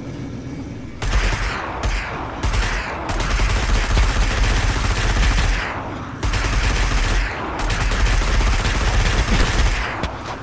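A rapid burst of gunfire blasts repeatedly.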